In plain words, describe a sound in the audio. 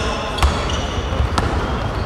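A basketball bounces on the floor as it is dribbled.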